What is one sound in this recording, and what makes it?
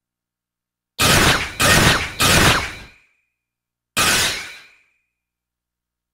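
A sword swishes through the air in quick slashes.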